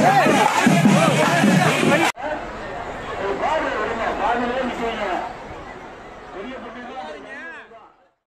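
A crowd of men chatters and shouts loudly outdoors.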